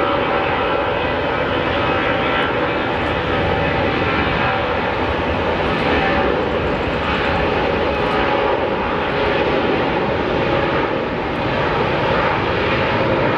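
A jet airliner's engines roar steadily as it rolls along a runway.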